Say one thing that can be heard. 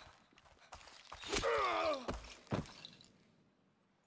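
An arrow thuds into the ground.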